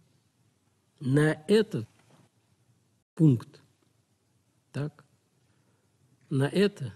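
An elderly man speaks calmly and slowly into a nearby microphone, with pauses.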